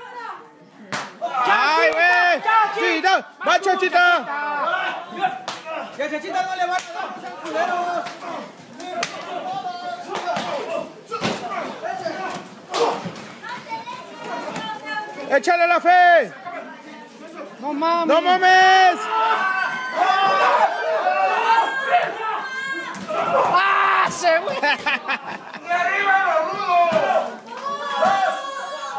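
A crowd of men and women shout and cheer excitedly.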